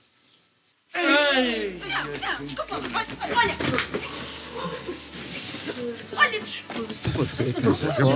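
A group of men cheer and shout excitedly.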